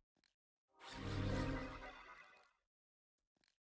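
A magical spell bursts with a deep, shimmering whoosh.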